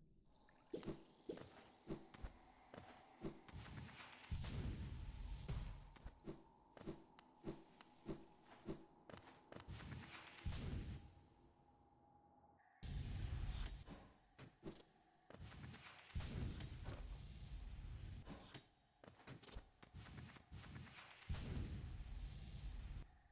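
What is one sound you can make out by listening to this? A game character's footsteps tap quickly.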